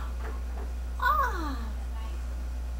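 A woman lets out a sudden loud exclamation.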